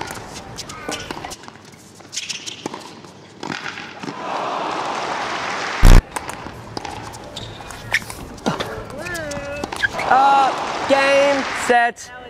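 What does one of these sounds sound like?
A table tennis ball clicks back and forth.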